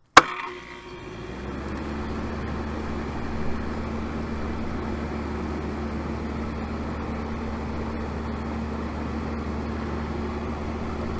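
An air conditioning unit hums steadily up close.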